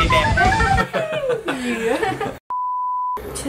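A young woman laughs excitedly close by.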